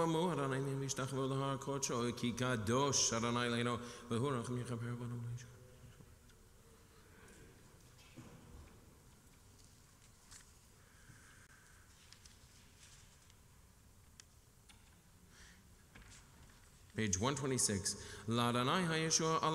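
A man chants in a sung voice through a microphone.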